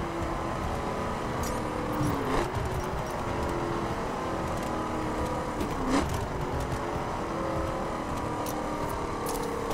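A car engine drones steadily as the car slows, dropping in pitch at gear changes.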